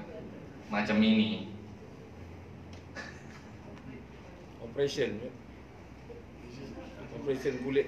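A man speaks into a microphone in short bursts, calmly reciting.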